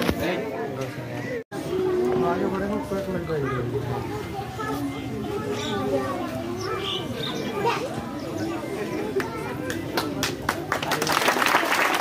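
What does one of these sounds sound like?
A group of children sings together outdoors.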